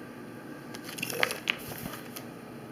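Plastic binder pages rustle and crinkle as they are turned.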